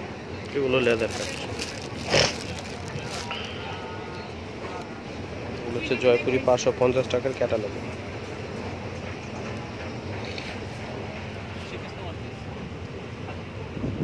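Plastic wrapping crinkles under a hand.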